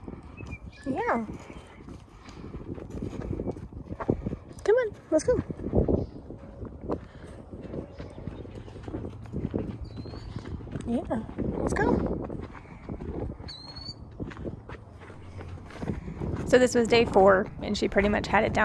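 A horse walks with soft hoof thuds on dry dirt.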